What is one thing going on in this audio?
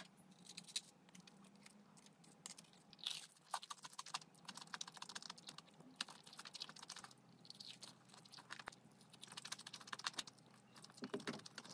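Crispy fried food crunches loudly close to a microphone.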